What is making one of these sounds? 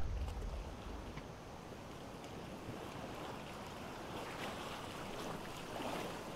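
Footsteps crunch through dry grass at a steady walking pace.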